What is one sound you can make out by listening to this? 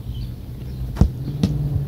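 A ball is kicked hard with a sharp thump.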